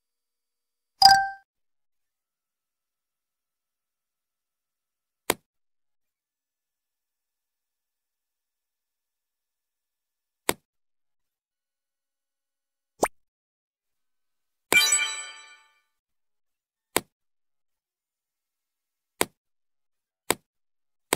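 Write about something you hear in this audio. Short game sound effects click and chime as items are moved.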